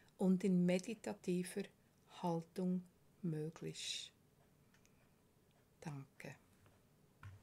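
An elderly woman speaks calmly and close to a microphone, with pauses.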